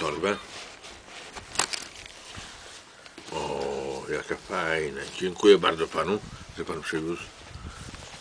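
A middle-aged man talks with animation close by.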